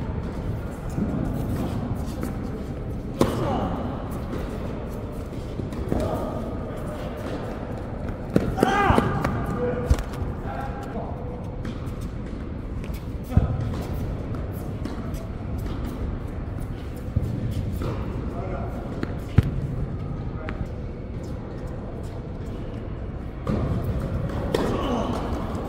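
Tennis balls are struck sharply by rackets, echoing in a large indoor hall.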